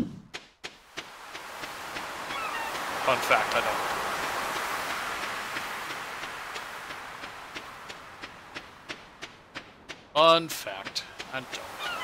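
Waves wash gently on a shore.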